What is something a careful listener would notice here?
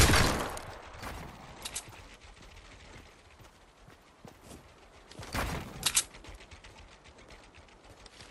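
Building pieces snap into place with quick wooden clacks in a video game.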